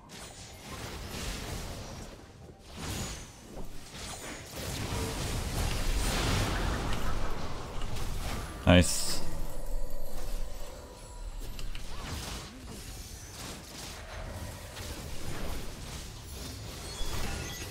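Magic blasts and clashing effects burst in a fast game battle.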